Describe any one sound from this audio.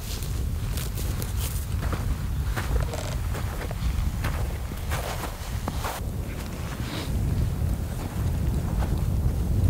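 Wind rumbles against the microphone outdoors.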